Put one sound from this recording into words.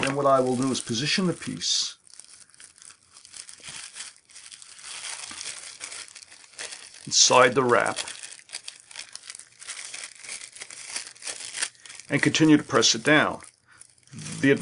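Plastic wrap crinkles and rustles as it is folded by hand.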